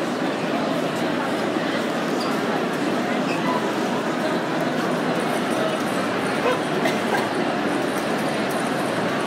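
A large crowd chatters loudly in a big echoing hall.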